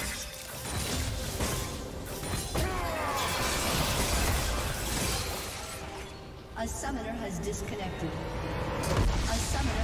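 Game spell effects whoosh and clash in a fight.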